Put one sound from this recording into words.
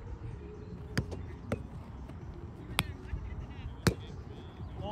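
A ball smacks sharply off a small bouncy net.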